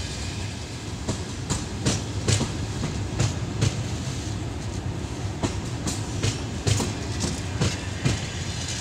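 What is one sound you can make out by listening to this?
Passenger coach wheels clack over rail joints as a train pulls out.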